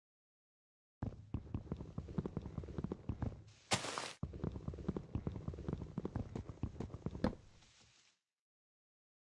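Wood crunches and scrapes steadily as a tree trunk is hacked.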